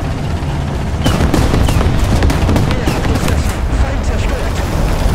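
Explosions boom and crack nearby.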